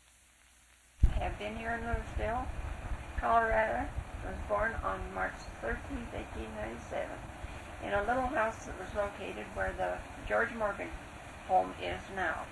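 An elderly woman speaks calmly, heard through an old tape recording.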